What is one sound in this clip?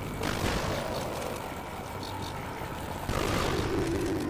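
A gun fires with loud, sharp bangs.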